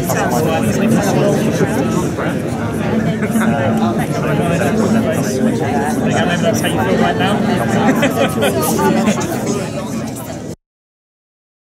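A crowd of men and women chatter all around in a large, echoing room.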